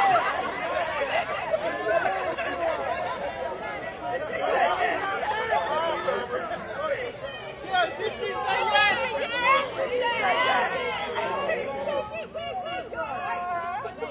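A crowd of men and women cheers and shouts excitedly close by.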